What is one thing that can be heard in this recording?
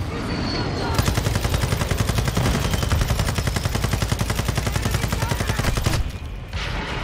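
A machine gun fires in a rapid, steady burst.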